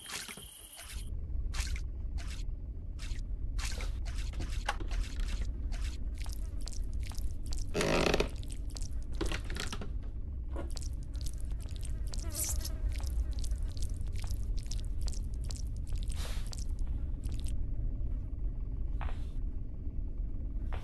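Footsteps thud quickly and steadily on a wooden floor.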